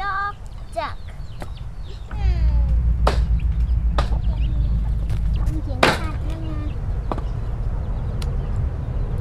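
A cleaver chops through meat on a wooden board with sharp knocks.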